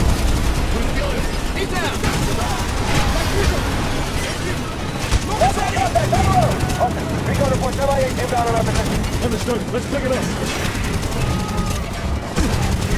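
Heavy machine guns fire in rapid, rattling bursts.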